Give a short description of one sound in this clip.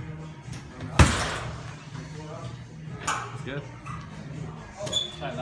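A kick thuds hard against a heavy punching bag.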